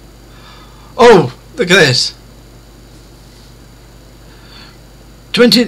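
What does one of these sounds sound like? A man speaks loudly and with animation into a close microphone.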